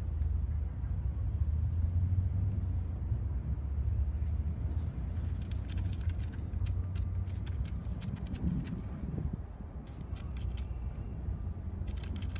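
A dog digs and scratches in sand.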